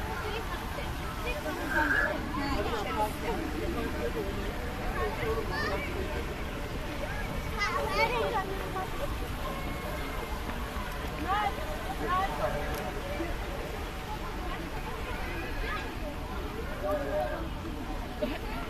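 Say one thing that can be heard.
A crowd chatters outdoors throughout.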